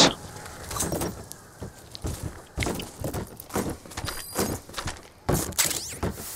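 Cardboard rustles and scrapes.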